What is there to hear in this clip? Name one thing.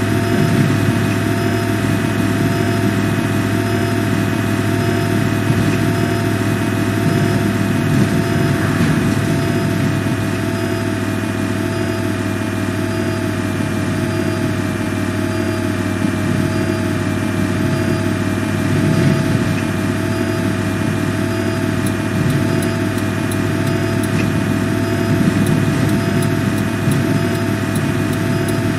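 A bus engine hums steadily while driving.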